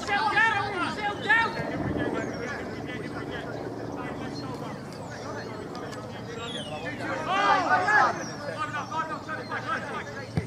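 Men shout across an open field.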